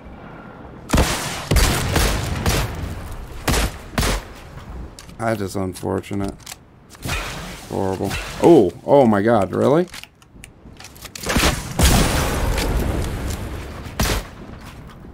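Gunshots and explosions crack from a game.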